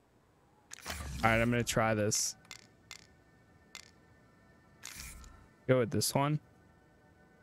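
Short chimes and whooshes sound from a game menu.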